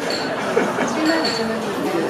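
A man laughs nearby.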